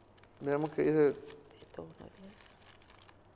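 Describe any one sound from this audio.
A man speaks briefly into a microphone.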